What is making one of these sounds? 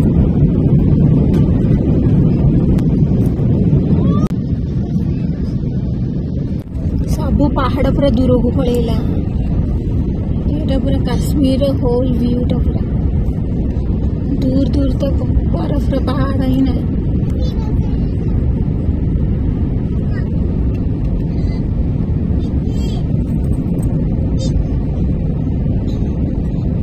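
The engines of a jet airliner in flight roar, heard from inside the cabin.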